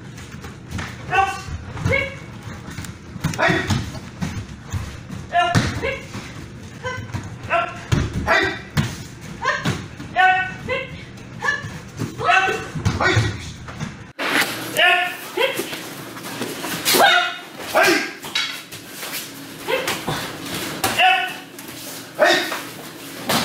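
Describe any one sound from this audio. Young men and women shout sharp martial arts cries in a hall with a slight echo.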